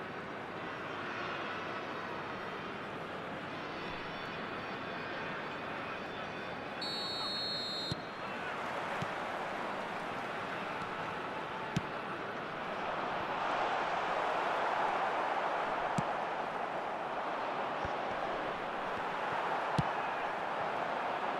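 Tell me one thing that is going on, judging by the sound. A large stadium crowd roars and chants steadily throughout.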